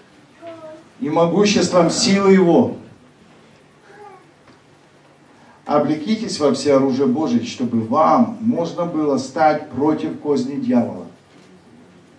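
A man speaks with feeling into a microphone, in a large room with some echo.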